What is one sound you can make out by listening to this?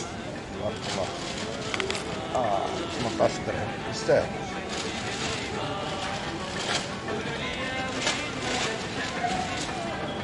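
A hand picks up a pear from a cardboard crate with a soft rustle.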